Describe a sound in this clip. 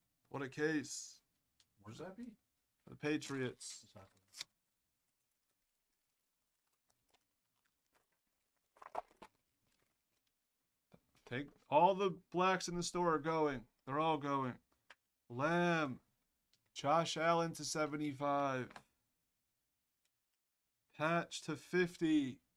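A man talks animatedly through a microphone, in bursts with pauses.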